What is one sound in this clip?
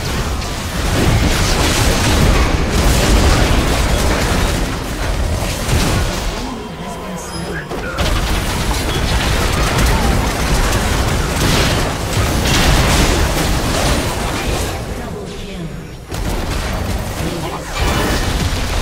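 Game spells and attacks crash and boom in a busy battle.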